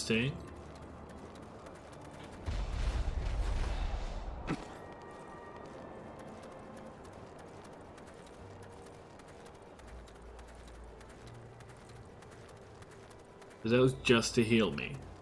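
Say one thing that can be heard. Footsteps crunch on snow at a running pace.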